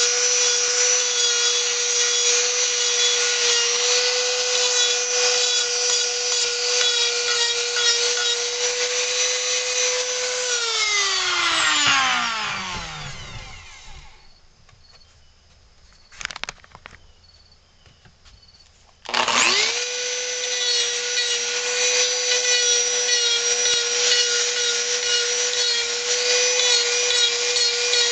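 A small rotary tool whines at a steady high pitch, winds down to a stop, then starts up again.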